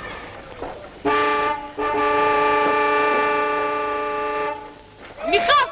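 A ship's horn blows a long, steady blast.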